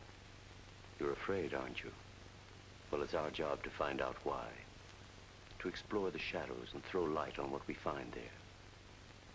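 A middle-aged man speaks calmly and closely.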